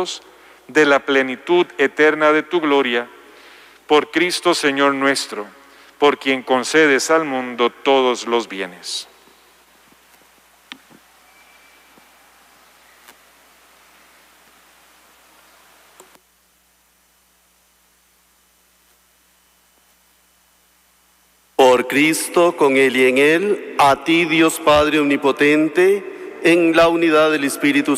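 A man chants a sung prayer through a microphone in a large echoing hall.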